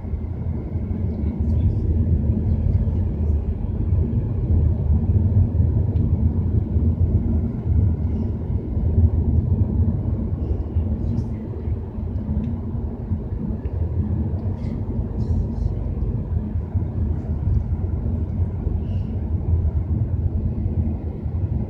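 A car drives steadily along a road with a low rumble of tyres and engine.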